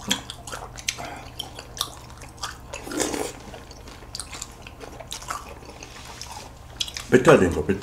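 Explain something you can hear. A young man chews food close to a microphone.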